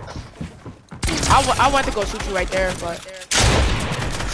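Rapid gunshots crack in a video game.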